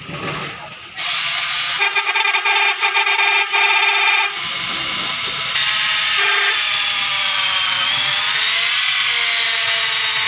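A power tool whirs with a loud, steady high whine.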